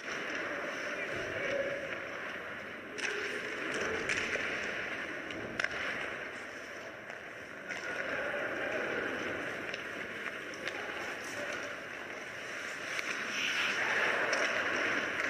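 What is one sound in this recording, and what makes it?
Ice hockey skates scrape and carve across ice in a large echoing arena.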